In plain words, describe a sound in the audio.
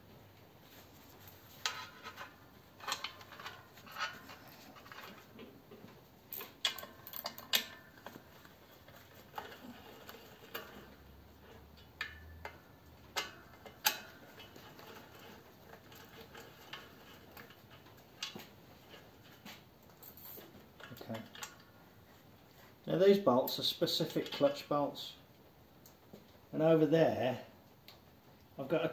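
A ratchet wrench clicks as bolts are turned.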